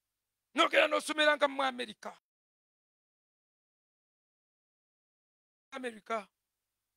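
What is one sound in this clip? A man preaches loudly into a microphone, with pauses between phrases.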